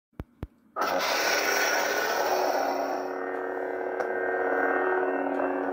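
An enlarger's fan hums steadily.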